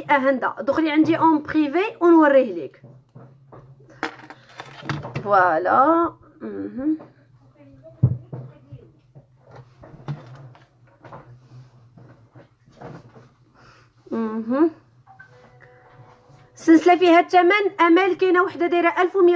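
A young woman speaks close by, with animation and pauses.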